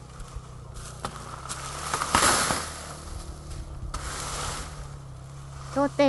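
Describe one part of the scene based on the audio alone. Leaves and dry stalks rustle as a man pushes through thick brush.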